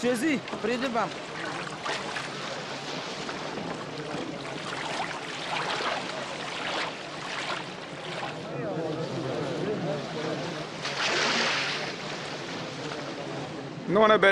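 Water laps and splashes against a boat.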